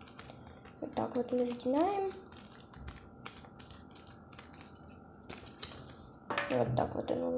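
Stiff paper rustles and crackles as it is handled.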